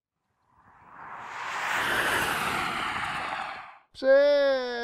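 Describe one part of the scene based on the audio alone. Electric cars whoosh past outdoors.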